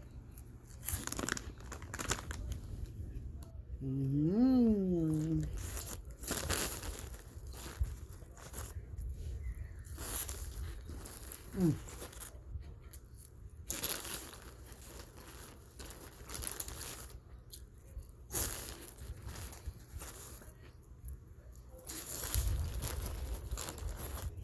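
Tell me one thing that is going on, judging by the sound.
A plastic snack bag crinkles.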